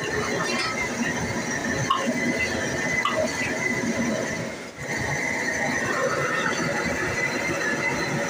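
Liquid sizzles in a hot wok.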